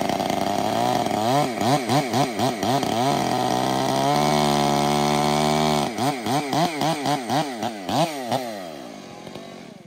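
Chainsaw engines rev up and down rapidly.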